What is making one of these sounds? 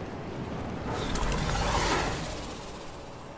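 A glider snaps open with a loud whoosh.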